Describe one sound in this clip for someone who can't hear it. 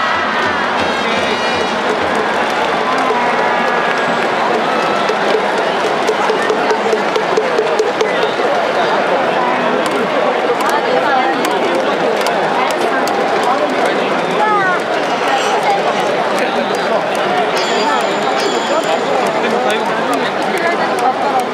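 A large stadium crowd cheers and chants loudly throughout.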